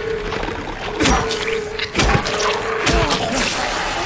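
A metal pipe strikes a creature with heavy thuds.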